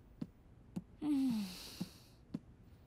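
A woman speaks softly and hesitantly.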